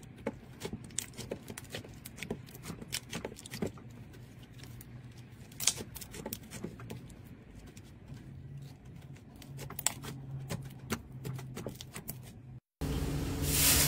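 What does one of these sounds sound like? Hands squish and squeeze soft slime with faint sticky clicks.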